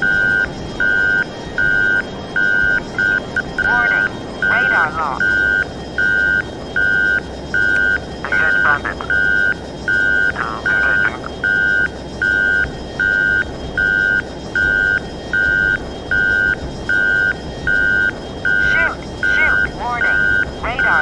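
A jet fighter's engines roar, heard from inside the cockpit.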